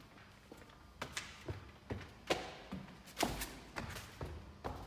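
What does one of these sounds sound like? Footsteps climb a staircase close by.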